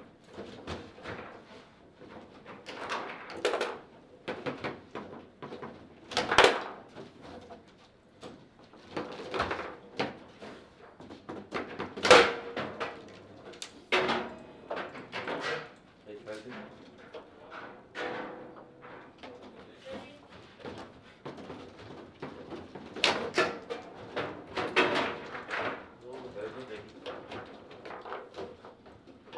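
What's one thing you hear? Foosball rods rattle and plastic figures click against the ball.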